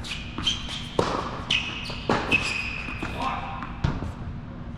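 A tennis ball is struck by rackets with sharp pops that echo in a large hall.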